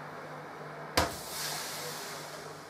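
A metal baking tray slides into an oven rack with a clatter.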